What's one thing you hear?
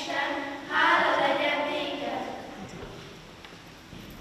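Children sing together in a large hall, then the song fades out.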